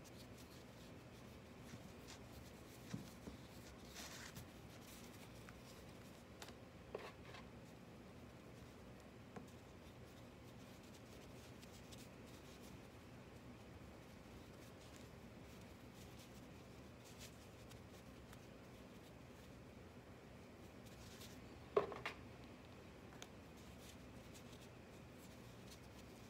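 Hands rub softly against clay.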